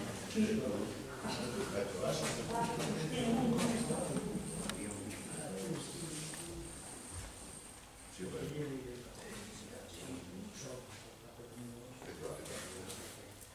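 Elderly men talk to each other in an echoing hall.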